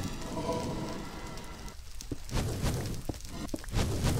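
A pickaxe chips at stone blocks with quick, dull knocks.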